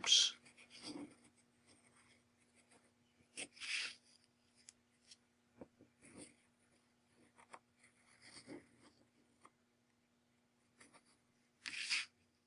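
A pencil scratches faintly on paper.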